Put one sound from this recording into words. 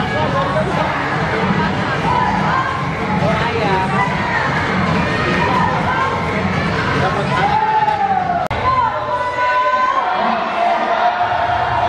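A large crowd chatters and cheers loudly in an echoing hall.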